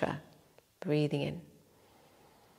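A young woman speaks briefly and calmly nearby.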